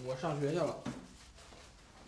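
A young man speaks briefly and calmly, close by.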